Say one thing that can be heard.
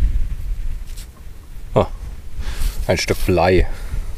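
A hand crumbles loose soil.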